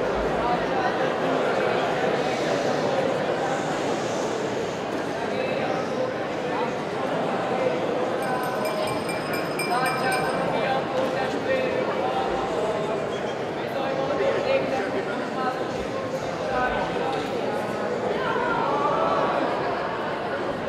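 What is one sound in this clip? A group of young men and women sing together.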